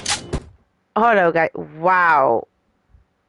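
A young woman exclaims with animation into a microphone.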